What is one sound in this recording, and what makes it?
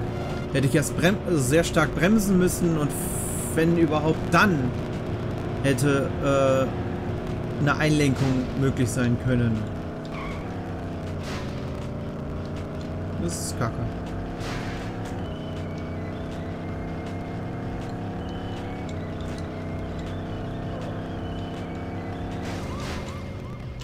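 A racing car engine roars at high speed, its pitch rising and falling as it shifts gears.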